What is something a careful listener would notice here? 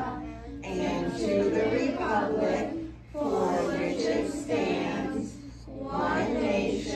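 A group of young children sing together close by, in phrases with short pauses.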